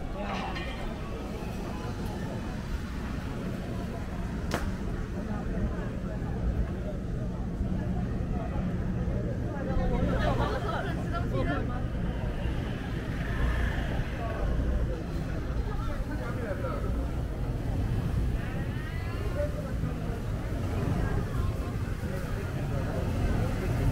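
A crowd chatters all around outdoors on a busy street.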